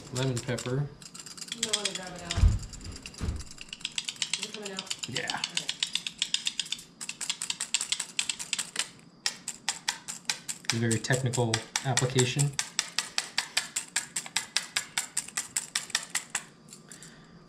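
A spice grinder grinds with quick rattling clicks.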